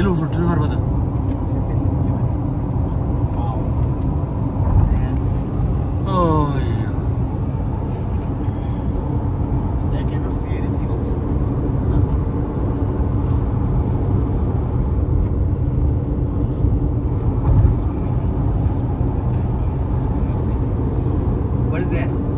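A car hums steadily from inside as tyres roll on a smooth road.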